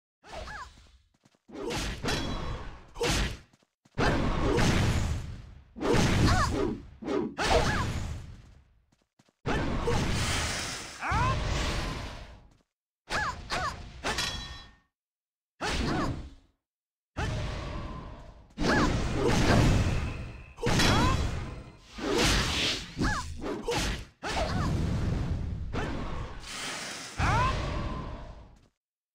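Magic spells burst and whoosh in quick bursts during a fight.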